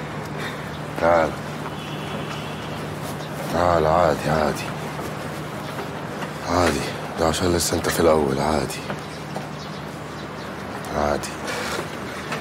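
Men talk nearby in loud, animated voices.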